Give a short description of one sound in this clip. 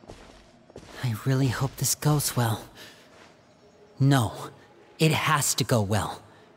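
A young man speaks calmly and thoughtfully, close by.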